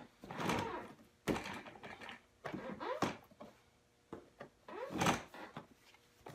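An office chair's backrest clunks and creaks as it tilts.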